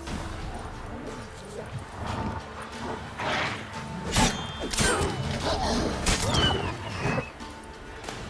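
A sword clashes and slashes in a fight.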